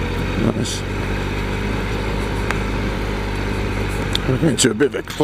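An engine hums steadily at low pitch.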